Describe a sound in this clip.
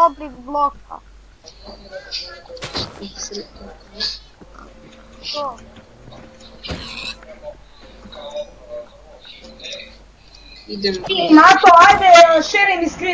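Pigs grunt and squeal.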